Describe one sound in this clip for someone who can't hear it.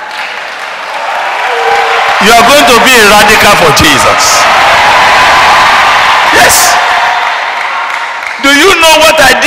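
A large audience laughs and cheers loudly.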